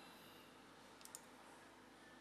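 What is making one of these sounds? Short sharp clicks sound twice.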